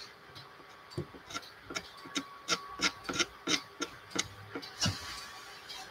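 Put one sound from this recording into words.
A brush taps and dabs repeatedly against a canvas.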